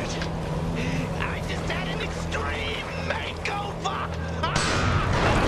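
A man shouts angrily.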